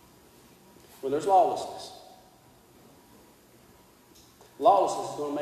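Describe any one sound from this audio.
A man speaks with animation into a microphone, echoing in a large room.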